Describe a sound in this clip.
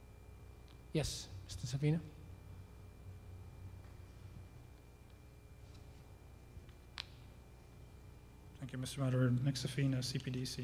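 A middle-aged man answers briefly through a microphone.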